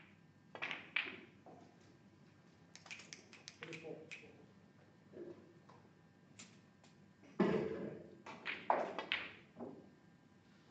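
Snooker balls clack together on a table.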